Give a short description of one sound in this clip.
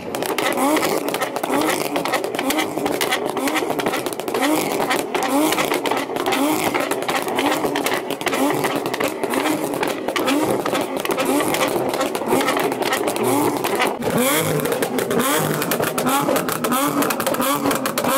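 A sports car engine revs hard and loud.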